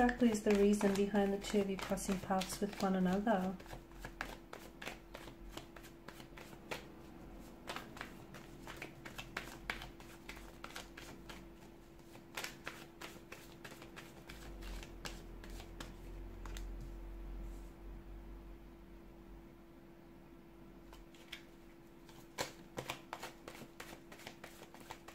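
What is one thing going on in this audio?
Playing cards riffle and flick as a deck is shuffled.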